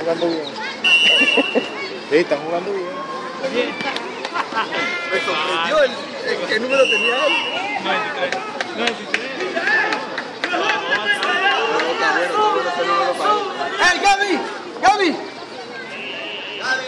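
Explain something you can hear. Children shout and call out with excitement outdoors.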